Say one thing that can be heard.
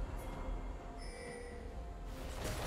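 A bright electronic chime rings out briefly.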